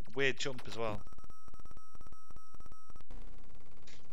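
A game jingle plays a short tune.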